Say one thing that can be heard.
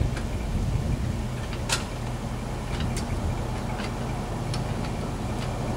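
Metal clinks sharply now and then.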